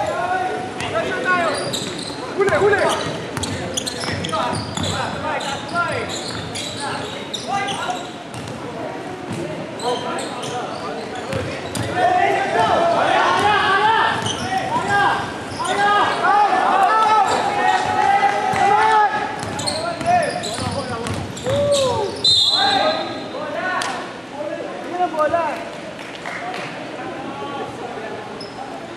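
A basketball thuds as it bounces on the court.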